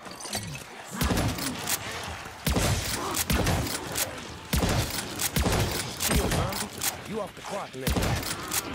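A gun fires repeated loud shots.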